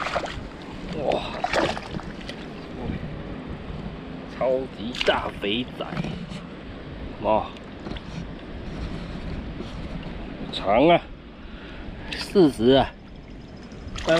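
Shallow river water splashes around a struggling fish.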